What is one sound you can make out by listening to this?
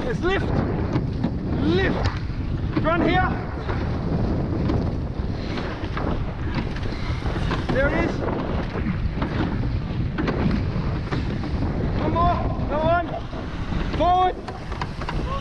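A young man shouts calls to the rowers.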